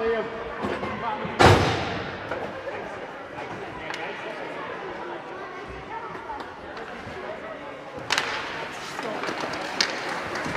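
Skates scrape on ice.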